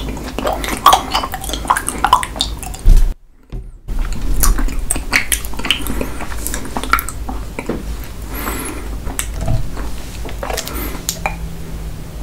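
A man chews with wet, smacking lips.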